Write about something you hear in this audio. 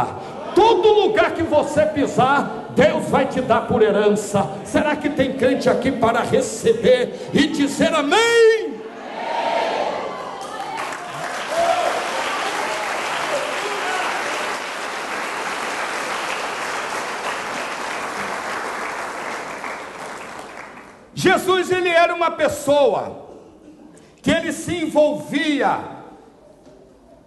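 A middle-aged man preaches loudly and with passion into a microphone, in a large echoing hall.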